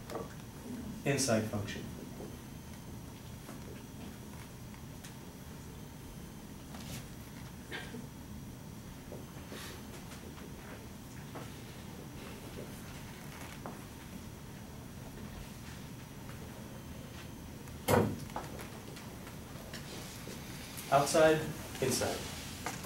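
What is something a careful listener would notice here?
A man speaks calmly in a slightly echoing room.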